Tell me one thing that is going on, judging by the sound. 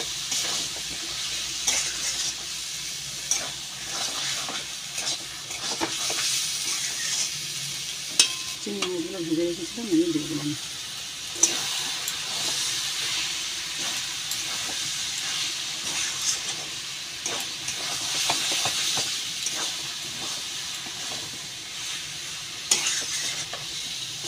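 Food sizzles and hisses steadily in a hot pan.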